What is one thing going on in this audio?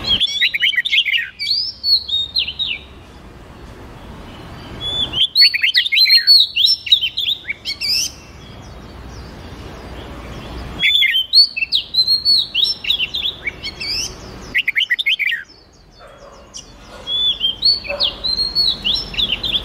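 A songbird sings in bursts of rapid, bright whistling chirps.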